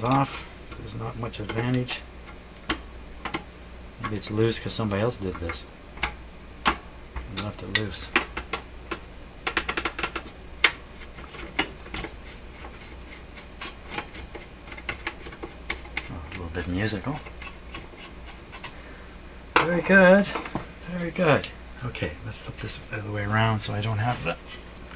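A metal panel clanks and knocks as it is handled.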